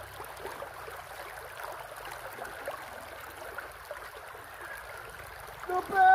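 A man splashes water with his hands.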